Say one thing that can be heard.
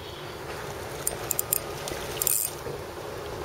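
Water splashes as a hooked fish thrashes at the surface.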